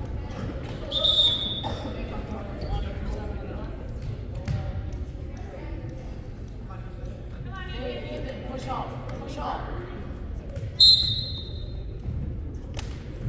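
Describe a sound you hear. A referee's whistle blows in short sharp blasts.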